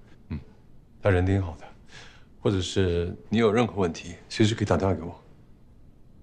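A man speaks calmly and seriously at close range.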